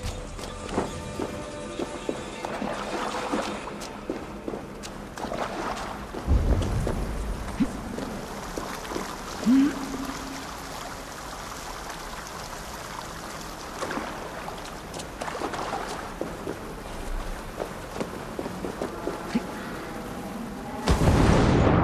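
Footsteps crunch slowly over rocky ground.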